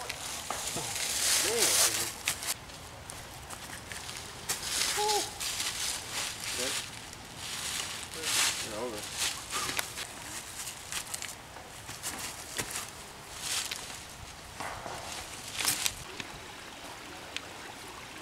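Footsteps scuff and crunch on dry leaves.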